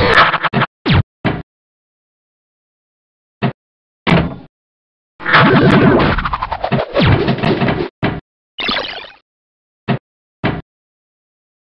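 Electronic pinball game sounds beep, chime and bounce in short bursts.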